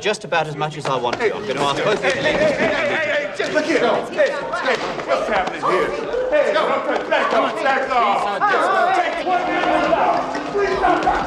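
Several men shout angrily over one another.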